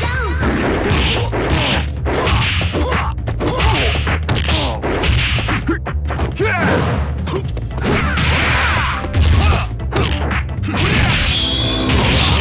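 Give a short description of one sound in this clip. Punches and kicks land with sharp smacks and thuds.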